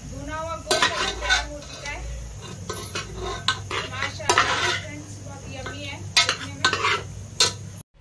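A metal spoon scrapes and stirs inside a metal pot.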